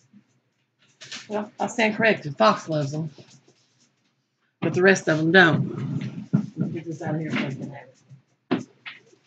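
A middle-aged woman talks with animation close by.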